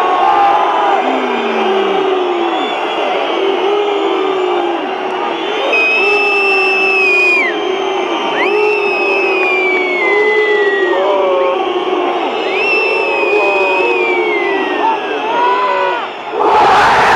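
A large stadium crowd chants and sings loudly, all the way through.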